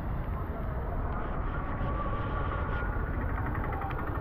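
An auto-rickshaw engine putters close by.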